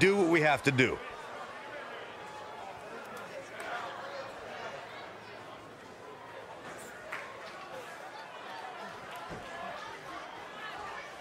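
A large crowd cheers and claps in a big hall.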